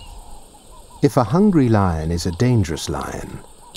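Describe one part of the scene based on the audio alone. Baboons bark and call out.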